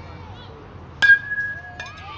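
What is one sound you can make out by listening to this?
A metal bat cracks sharply against a ball.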